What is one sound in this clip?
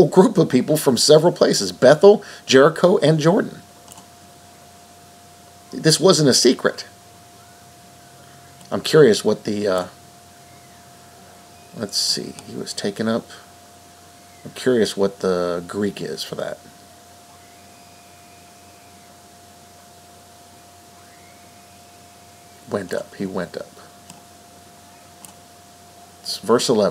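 A man reads aloud close to a microphone, in short bursts with pauses.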